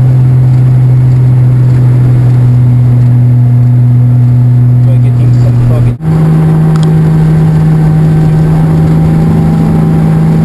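A vehicle engine drones steadily close by.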